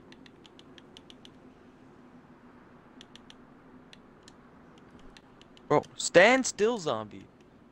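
Soft interface clicks tick repeatedly.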